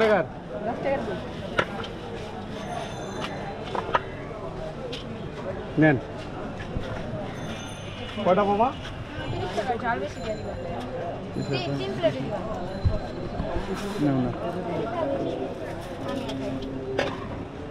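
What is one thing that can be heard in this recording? A hand scoops and rustles loose rice in a metal pan.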